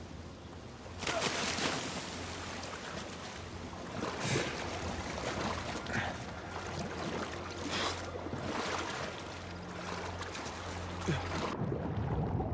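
Water rushes and splashes loudly nearby.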